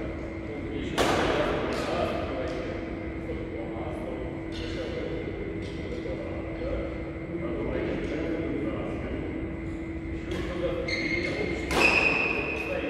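A shuttlecock is struck with a racket.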